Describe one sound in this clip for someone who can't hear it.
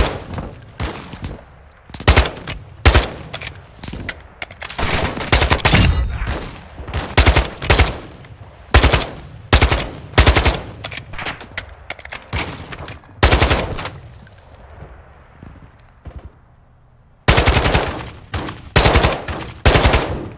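Gunshots crack in rapid bursts, close by.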